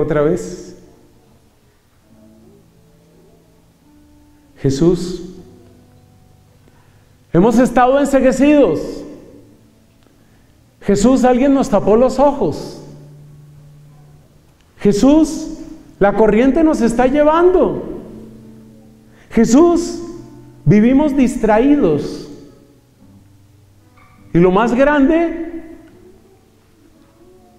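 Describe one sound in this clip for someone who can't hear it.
A man sings in short phrases through a microphone and loudspeakers, echoing in a large hall.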